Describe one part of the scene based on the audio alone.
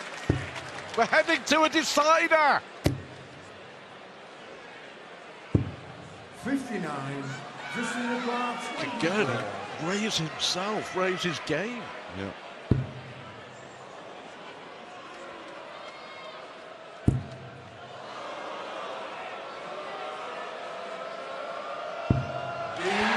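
Darts thud into a dartboard one at a time.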